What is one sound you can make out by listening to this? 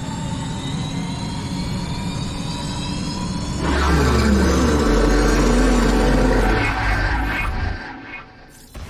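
A huge machine roars and rumbles with deep thrusters blasting.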